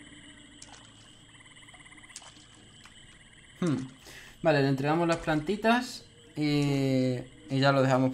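Water splashes as a figure wades through it.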